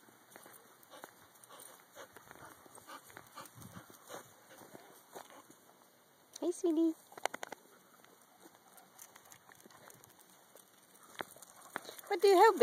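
Dogs scuffle and pad over dry grass and gravel.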